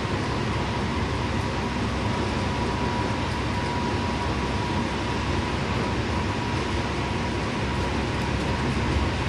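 A bus engine rumbles steadily while driving along a highway.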